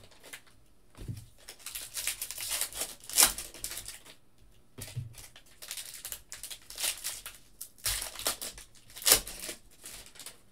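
Foil packs crinkle and rustle as hands tear them open.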